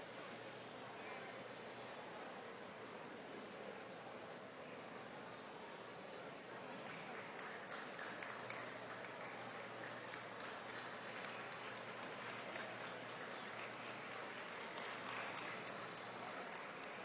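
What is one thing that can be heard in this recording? A crowd murmurs in a large indoor hall.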